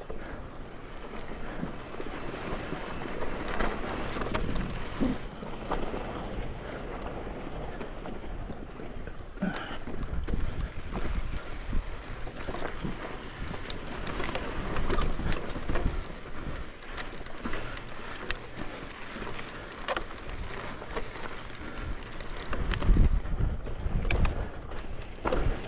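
A bicycle rattles and clatters over bumps.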